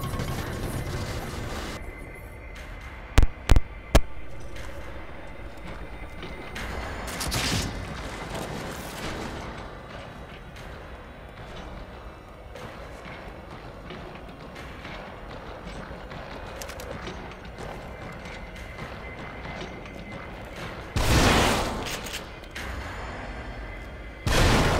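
A young man talks into a headset microphone with animation.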